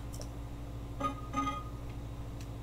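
A soft electronic chime sounds twice.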